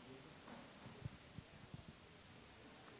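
Thumps and bumps of a handheld microphone being handled sound close by.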